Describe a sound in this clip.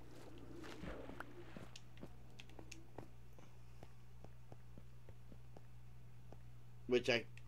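Footsteps tap lightly on hard stone.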